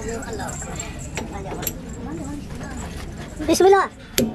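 Metal tools clink and knock against a truck's axle.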